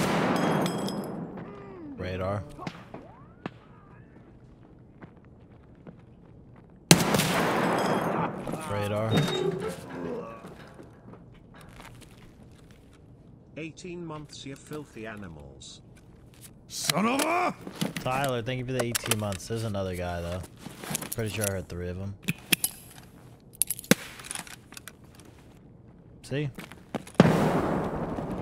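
Gunshots boom and echo.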